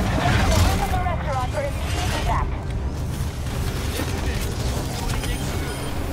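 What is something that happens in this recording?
Video game gunfire rattles in quick bursts.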